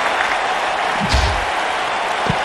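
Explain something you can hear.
A body slams heavily onto a wrestling mat.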